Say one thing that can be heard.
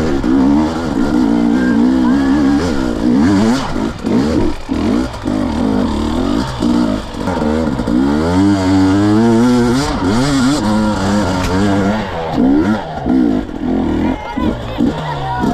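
A dirt bike engine revs hard up close, rising and falling in pitch.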